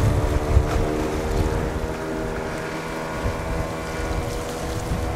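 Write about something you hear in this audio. Small waves lap gently.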